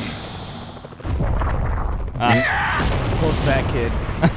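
A helicopter's rotor thuds overhead.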